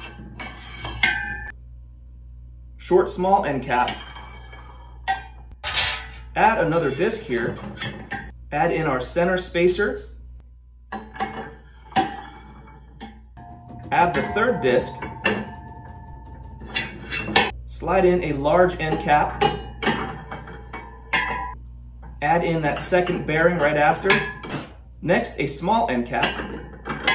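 Metal parts clink and clatter as they are fitted together.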